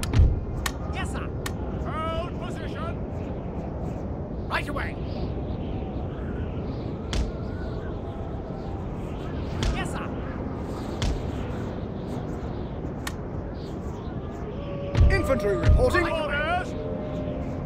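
Musket shots crack now and then over a battlefield.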